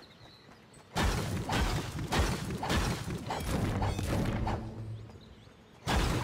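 A pickaxe strikes rock repeatedly with sharp knocks.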